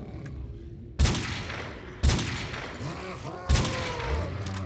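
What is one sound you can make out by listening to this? Gunshots crack sharply, a few times.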